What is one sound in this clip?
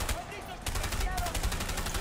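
Gunfire pops in short bursts.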